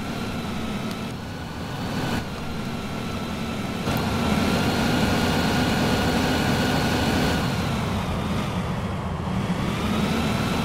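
Tyres roll over a road surface.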